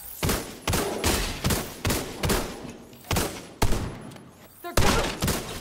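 Gunshots fire in quick bursts, echoing loudly.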